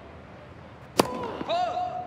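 A tennis ball is struck sharply with a racket.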